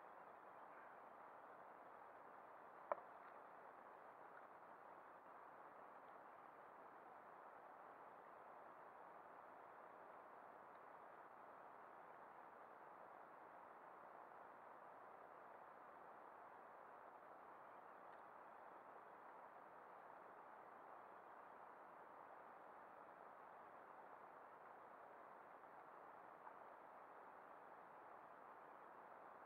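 Water laps softly against a kayak's hull.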